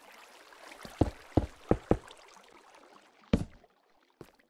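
A stone block thuds into place.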